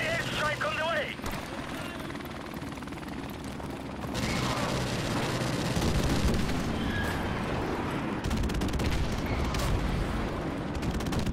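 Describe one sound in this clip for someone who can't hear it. A rifle fires in short bursts.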